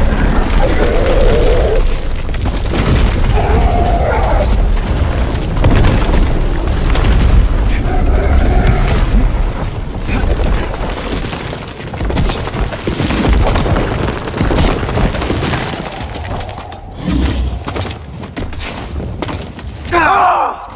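Large wings beat heavily through the air.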